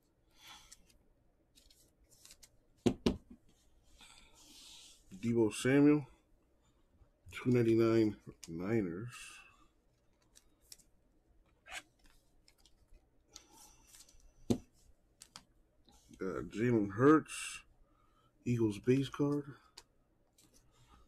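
A plastic card sleeve crinkles softly as hands handle it.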